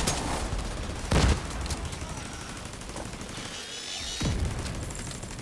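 Gunfire and explosions boom in a video game battle.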